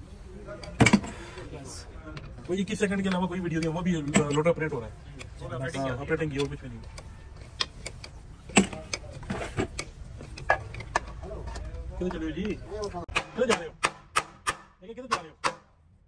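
Metal tools clink and scrape against metal.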